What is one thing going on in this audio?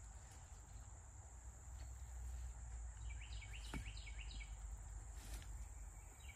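Something knocks softly against a tree stump.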